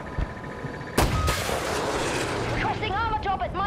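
A missile fires with a sudden loud blast and whoosh.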